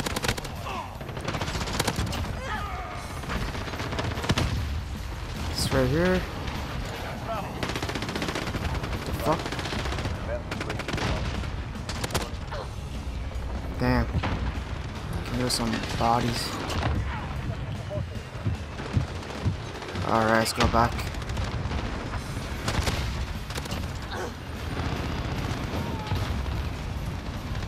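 An automatic gun fires in bursts.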